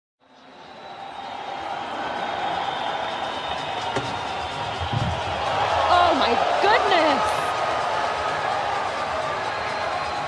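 A large crowd cheers and roars in a big stadium.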